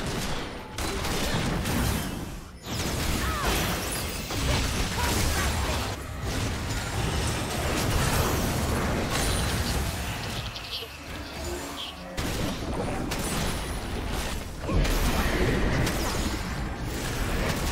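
Video game spells crackle and blast during a fight.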